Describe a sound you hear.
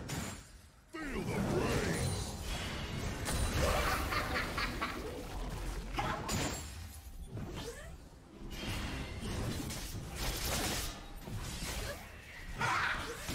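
Magic blasts and clashes of a video game battle ring out loudly and rapidly.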